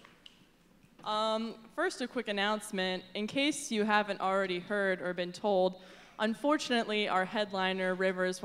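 A young woman speaks calmly through a microphone, heard over loudspeakers.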